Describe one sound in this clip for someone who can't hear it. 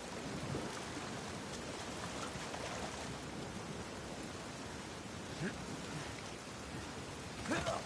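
A waterfall roars into churning white water.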